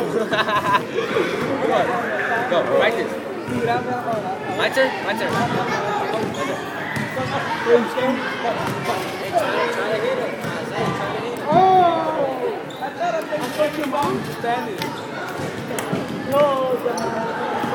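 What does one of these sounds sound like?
Teenage boys talk and laugh close by.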